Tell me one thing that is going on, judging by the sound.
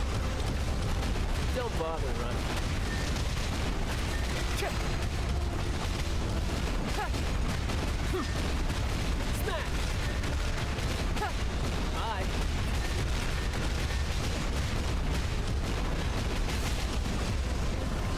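Game skill effects blast and crackle rapidly throughout.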